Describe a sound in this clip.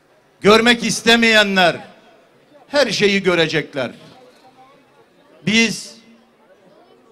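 A middle-aged man speaks loudly into a microphone through loudspeakers, in short phrases with pauses.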